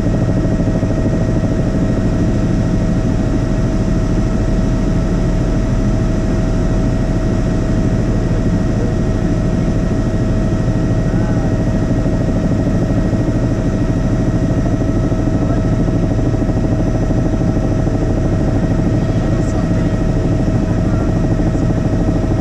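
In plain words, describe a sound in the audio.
A helicopter's engine and rotor drone loudly and steadily from inside the cabin.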